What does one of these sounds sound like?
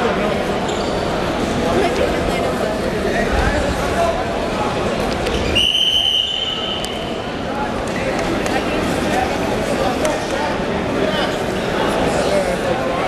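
Shoes squeak and thud on a wrestling mat.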